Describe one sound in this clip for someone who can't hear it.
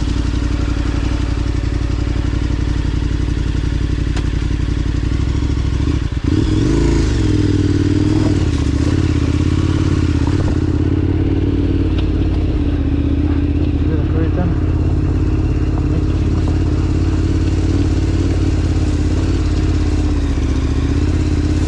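A motorcycle engine runs and revs up.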